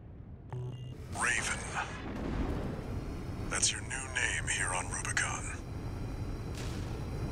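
Jet thrusters roar as a machine boosts into the air.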